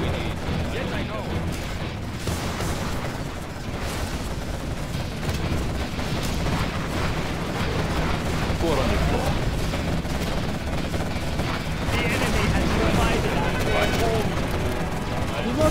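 Explosions boom with a low rumble.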